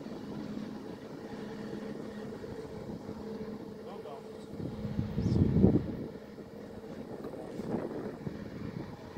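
A train's electric locomotive hums steadily as the train rolls away.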